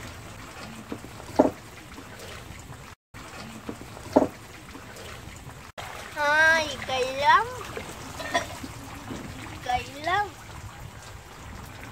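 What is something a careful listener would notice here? Water splashes as a girl's hands dip into it.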